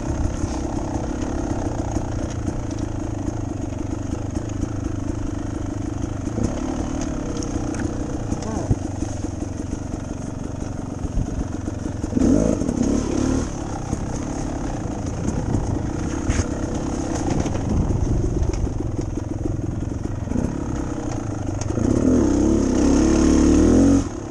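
A dirt bike engine hums and revs steadily close by.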